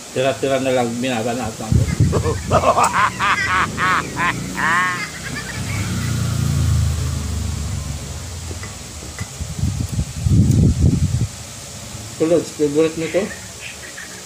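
A young man speaks playfully close by.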